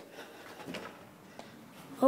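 A hand bumps against a wooden door frame.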